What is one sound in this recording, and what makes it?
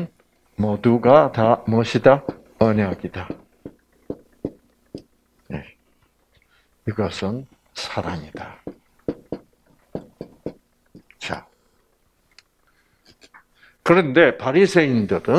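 An older man speaks calmly through a microphone, in short phrases with pauses.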